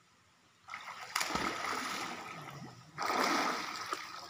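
Water splashes as a swimmer thrashes and dives.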